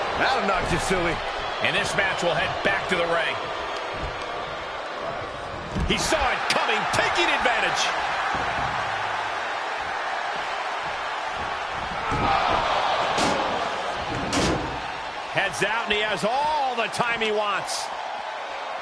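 Heavy bodies slam onto a ring mat with loud thuds.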